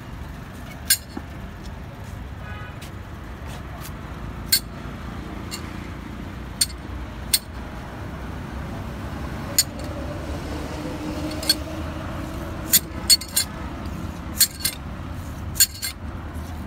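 A knife scrapes and clicks sharply against sugarcane as it is peeled.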